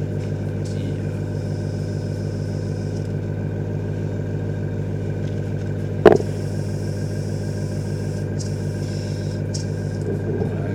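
An airbrush sprays with a soft, steady hiss in short bursts.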